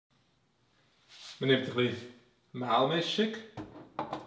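A lid clicks open on a small appliance.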